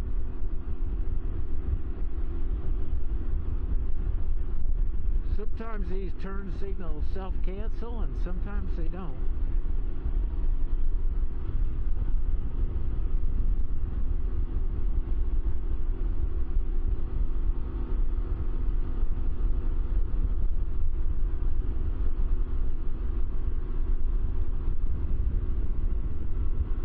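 Wind rumbles loudly against the rider.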